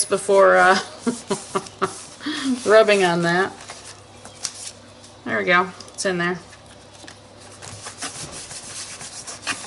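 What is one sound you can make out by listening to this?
Stiff paper pages rustle and flap as they are turned.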